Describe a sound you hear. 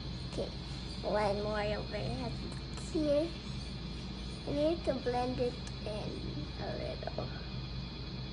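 A young girl speaks close by.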